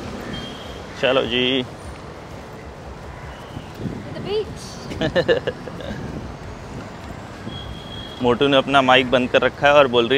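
A young woman talks cheerfully close by.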